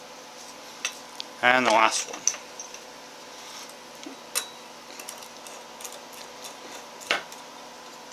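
Small metal gears click and clatter as they are turned by hand.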